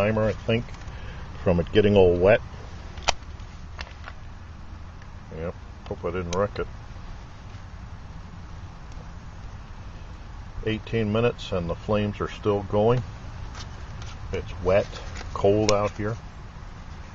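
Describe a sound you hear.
A small wood fire crackles and pops.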